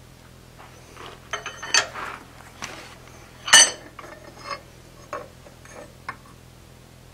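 Metal pieces clank as they are handled.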